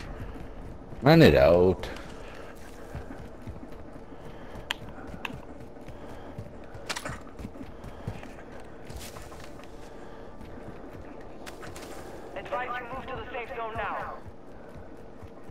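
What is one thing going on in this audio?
Footsteps thud quickly as a player runs.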